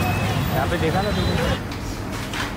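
Traffic rumbles on a busy street outdoors.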